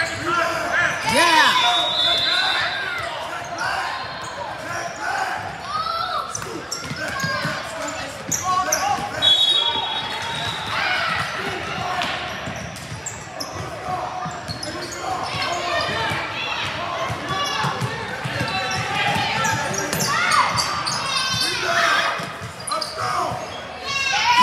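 Young children shout and call out in a large echoing gym.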